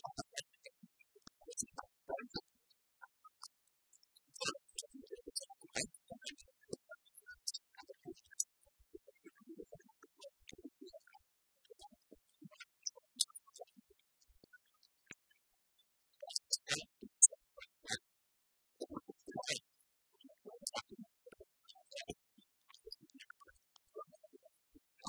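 Keys click on laptop keyboards.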